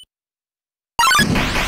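Chiptune game music starts playing loudly.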